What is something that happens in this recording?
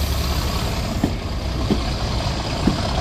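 Train wheels clatter and click over rail joints.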